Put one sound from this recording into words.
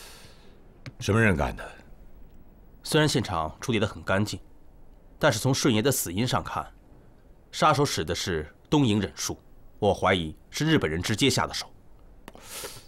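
A middle-aged man speaks calmly and seriously, close by.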